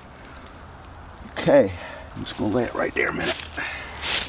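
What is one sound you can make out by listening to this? Dry leaves rustle on the ground.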